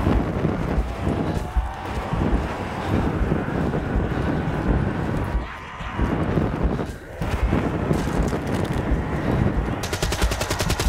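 A flamethrower roars loudly.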